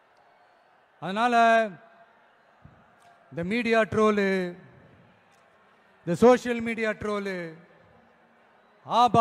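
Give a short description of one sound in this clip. A man speaks slowly and emphatically into a microphone over loudspeakers.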